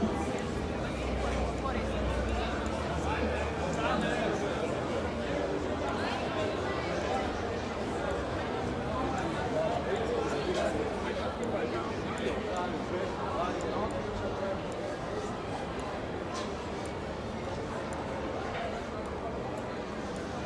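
A crowd of pedestrians chatters in the background outdoors.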